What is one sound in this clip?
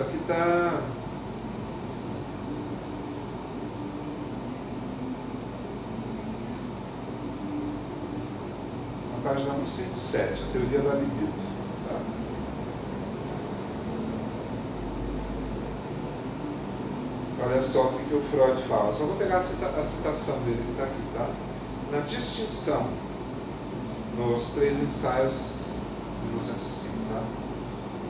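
A man speaks calmly, a little way off.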